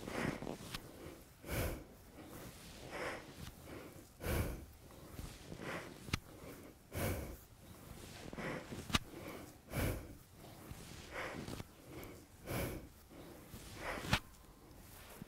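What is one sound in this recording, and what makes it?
A woman breathes out sharply in a steady rhythm.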